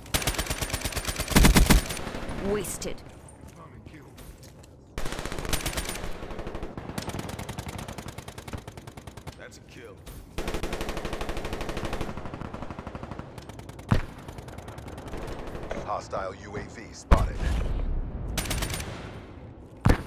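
Rapid automatic gunfire rattles in short bursts.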